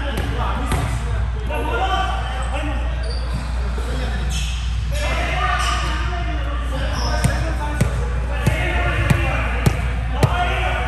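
Young men talk and call out in a large echoing hall.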